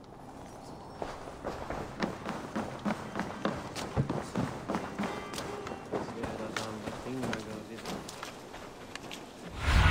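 Footsteps thud quickly on wooden floors and hard ground.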